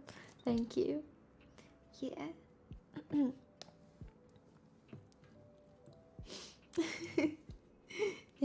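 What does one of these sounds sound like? A young woman talks casually and laughs close to a microphone.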